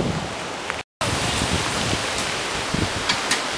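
Bicycle tyres crunch on a gravel path.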